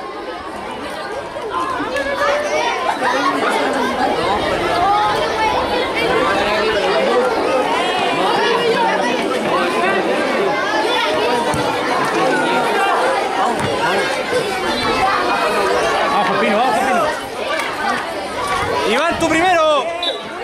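A crowd of children shouts and cheers outdoors.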